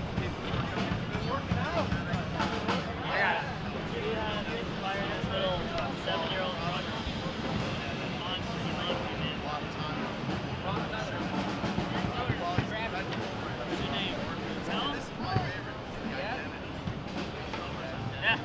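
A man taps on a drum head with his hands.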